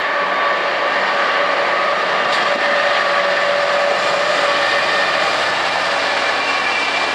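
Train wheels squeal on the rails.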